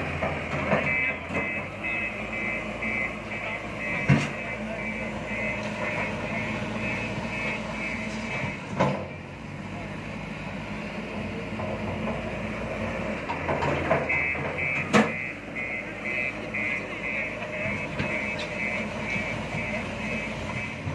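A machine's warning beeper beeps rapidly.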